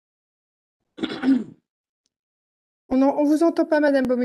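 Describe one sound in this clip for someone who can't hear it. A woman speaks calmly into a microphone, heard through an online call.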